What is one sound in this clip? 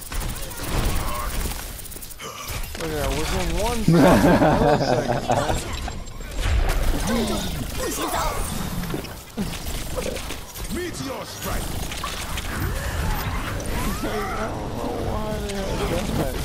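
Rapid energy gunshots fire in bursts.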